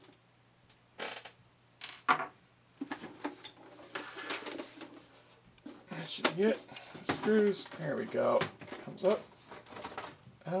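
A thin metal cover rattles and clanks as it is lifted off.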